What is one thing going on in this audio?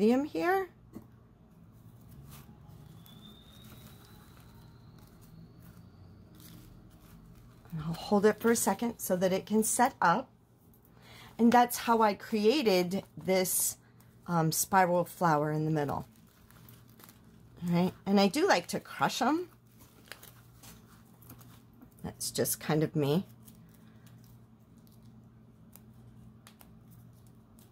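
Paper rustles softly between fingers.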